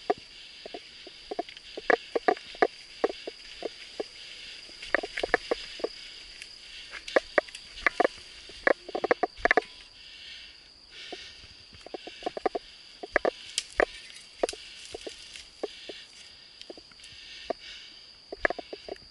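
A mountain bike rattles and clatters over a bumpy dirt trail.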